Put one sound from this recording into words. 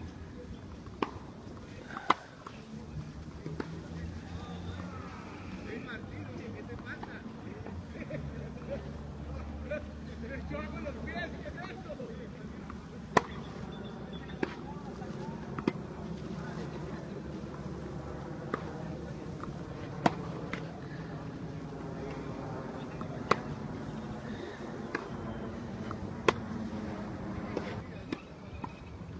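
Tennis balls are struck with rackets, sharp pops at irregular intervals.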